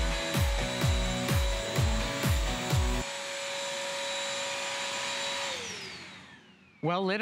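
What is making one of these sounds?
A vacuum cleaner motor hums steadily, then winds down.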